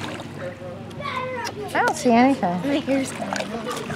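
Water splashes gently as a young woman climbs out of a pool.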